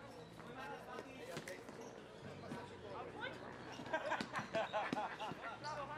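Plastic sticks clack against a ball.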